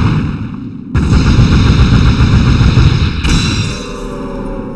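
A monster collapses and dissolves with a deep rumbling whoosh.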